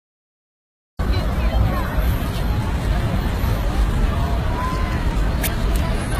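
A crowd murmurs outdoors in city street noise.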